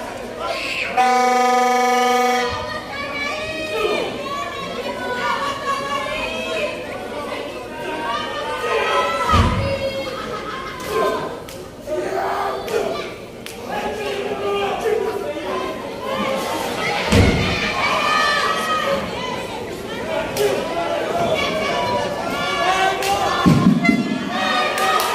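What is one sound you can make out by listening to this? A crowd of spectators shouts and cheers in a large hall.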